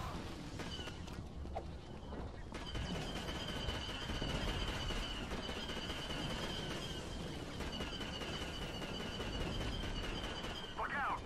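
Blasters fire in rapid bursts.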